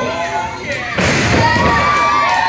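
A wrestler slams down onto a wrestling ring mat with a heavy thud.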